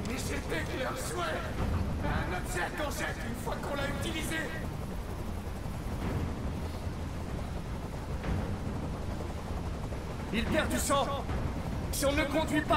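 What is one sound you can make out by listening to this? A young man speaks urgently and close by.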